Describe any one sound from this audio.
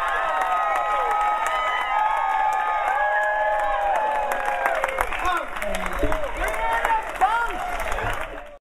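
A live band plays upbeat music loudly outdoors.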